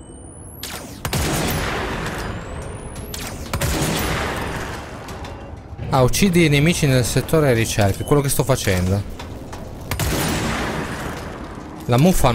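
A gun fires in bursts of loud shots.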